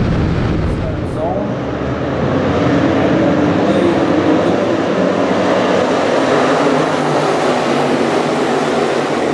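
A pack of race car engines roars loudly as the cars accelerate together.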